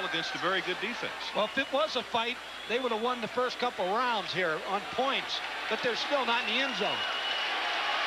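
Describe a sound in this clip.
A man shouts loudly and sharply.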